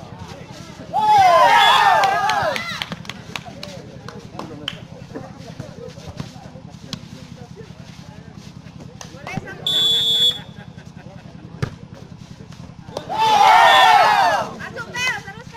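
Young men shout loudly during a volleyball game outdoors.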